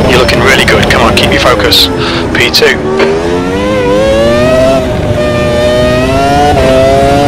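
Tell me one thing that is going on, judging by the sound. A racing car engine roars at high revs, dropping in pitch and then climbing again.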